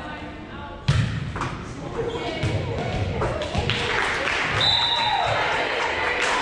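Women call out and cheer in a large echoing gym.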